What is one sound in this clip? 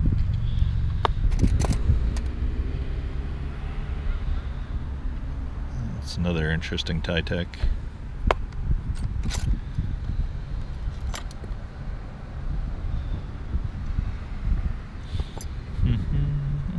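Small metal jewellery pieces clink and tap against one another.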